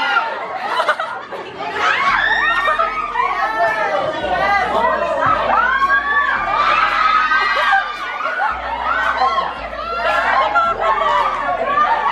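A crowd of young women laughs and cheers excitedly close by.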